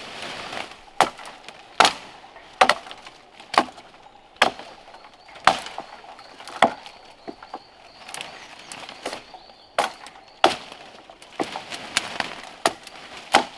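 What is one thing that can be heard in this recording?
A machete chops sharply into a felled tree trunk.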